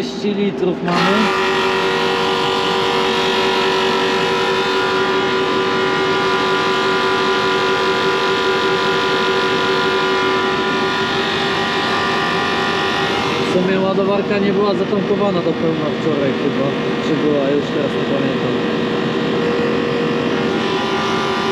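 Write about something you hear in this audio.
An electric fuel pump hums steadily.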